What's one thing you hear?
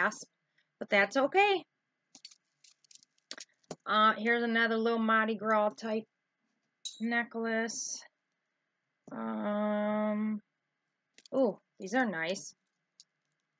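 A middle-aged woman speaks calmly and close by, in short phrases with pauses.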